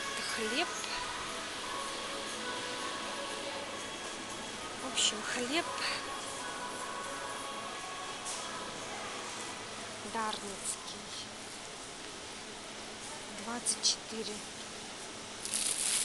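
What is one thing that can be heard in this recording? A large echoing hall hums steadily with a busy background murmur.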